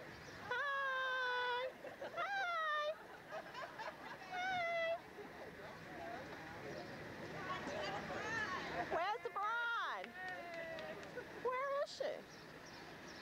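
Young women call out and cheer in high voices nearby.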